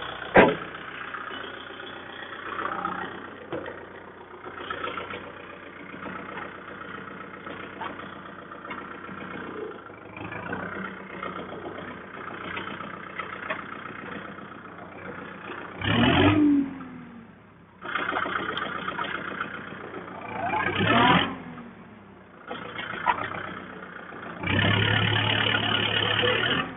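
A tractor engine runs with a steady chugging rumble.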